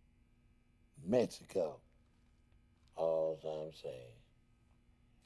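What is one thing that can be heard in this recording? A middle-aged man speaks calmly and quietly, close by.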